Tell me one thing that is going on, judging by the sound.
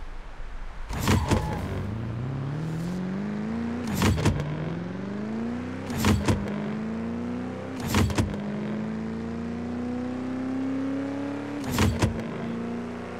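Gear shifts crack loudly as the engine drops in pitch.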